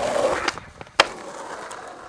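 A skateboard clacks sharply as it lands.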